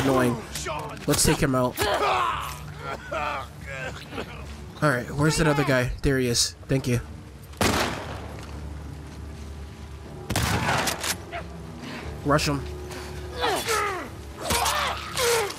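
A man grunts and groans in a close struggle.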